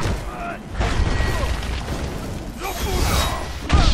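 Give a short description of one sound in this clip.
Fire bursts with a whoosh.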